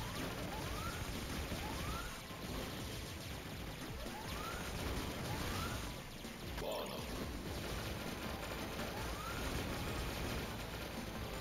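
Video game explosions boom and crackle.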